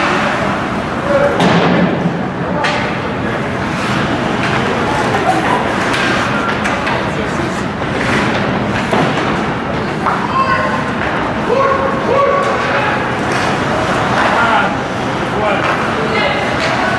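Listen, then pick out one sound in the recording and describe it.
Ice skates scrape and carve across a rink.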